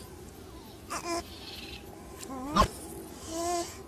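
A small cartoon creature squeals and yelps in a high voice.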